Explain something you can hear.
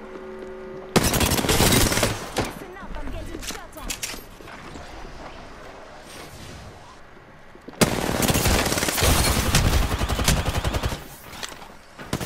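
A gun fires in rapid automatic bursts.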